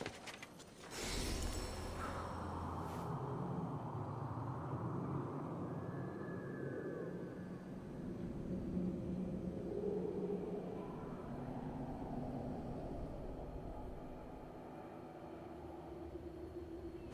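Wind rushes loudly past, then eases into a soft steady blowing.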